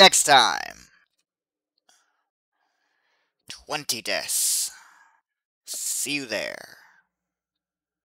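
A young man speaks in short bursts close to a microphone, with animation.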